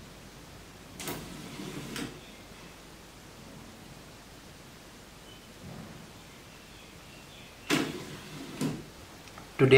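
A small sliding door slides and knocks against its frame.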